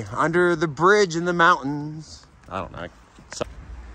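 Footsteps crunch on leaves along a path.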